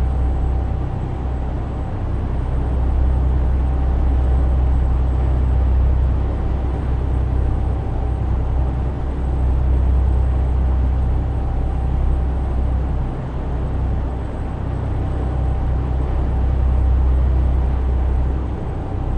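Tyres hum on a motorway.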